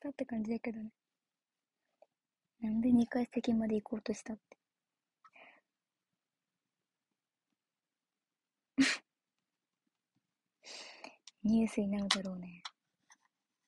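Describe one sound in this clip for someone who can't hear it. A young woman talks casually and closely into a microphone, pausing between phrases.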